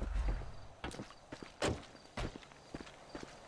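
Footsteps crunch on sandy ground.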